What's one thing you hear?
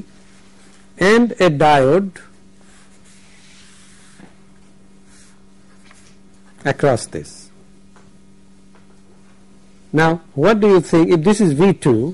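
A middle-aged man speaks calmly and close by, in short bursts with pauses.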